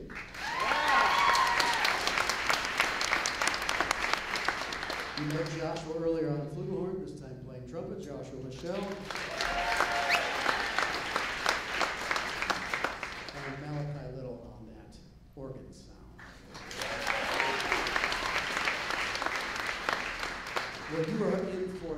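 A big band plays jazz in a large reverberant hall, with brass swelling in loud bursts.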